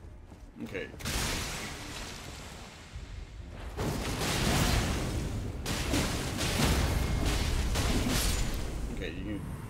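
Sword slashes and impacts clash loudly.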